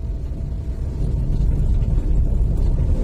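A van passes close by in the other direction.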